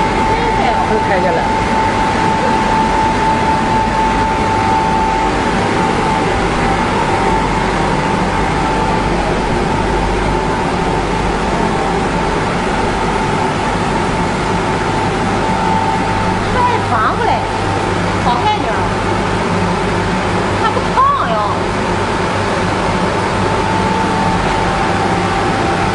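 A print head slides back and forth inside a machine.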